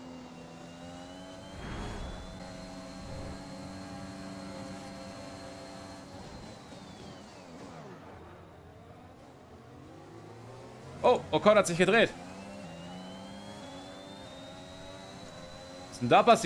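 A racing car engine whines and roars, rising and falling in pitch as gears change.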